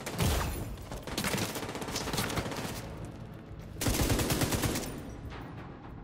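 Gunfire crackles in short bursts nearby.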